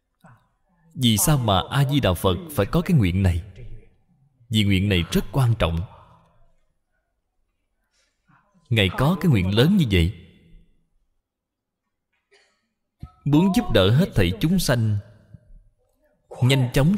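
An elderly man speaks calmly and slowly into a microphone, in phrases with pauses.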